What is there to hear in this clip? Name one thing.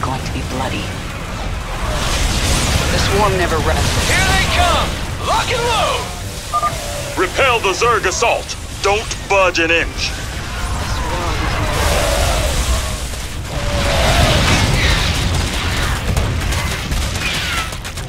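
Rapid gunfire rattles throughout a noisy battle.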